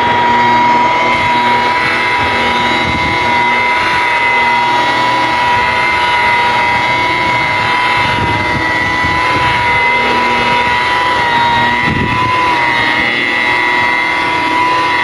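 A power polisher whirs steadily with a high motor whine.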